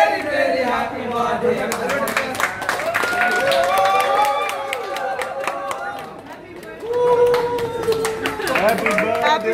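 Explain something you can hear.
A group of people clap their hands in rhythm.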